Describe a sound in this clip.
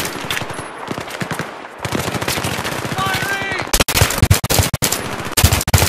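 Rapid gunfire cracks and rattles close by.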